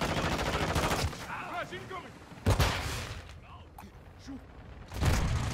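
A rifle fires bursts of rapid shots.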